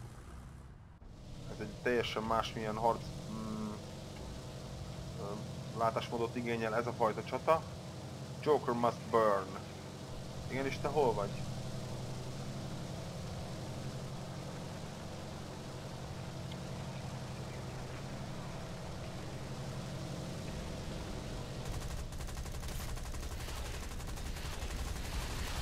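Propeller aircraft engines drone steadily.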